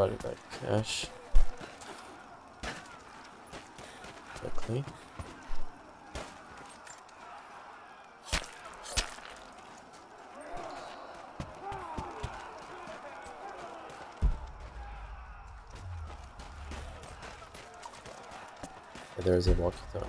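Footsteps crunch over debris and wooden boards.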